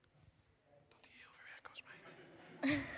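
A girl answers softly into a microphone.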